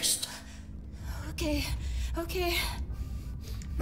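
A young woman answers nervously.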